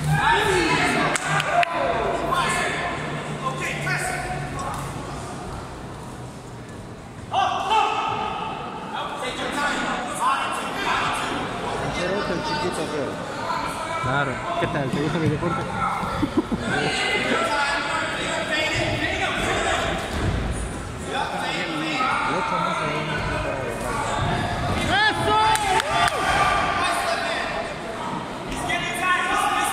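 A crowd of spectators shouts and cheers in a large echoing hall.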